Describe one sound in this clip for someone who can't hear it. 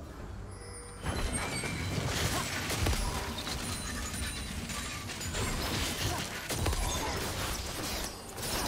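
Game spell effects and attacks crash and clash in a fight.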